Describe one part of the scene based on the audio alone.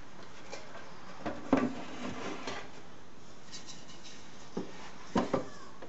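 A sheet slides and rustles against wooden strips.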